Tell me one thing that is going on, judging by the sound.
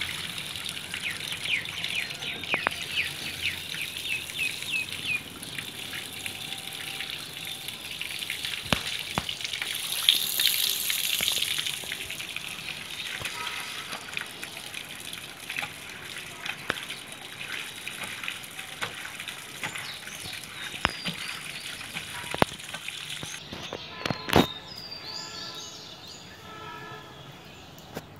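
Water gushes from a pipe and splashes onto a wet floor.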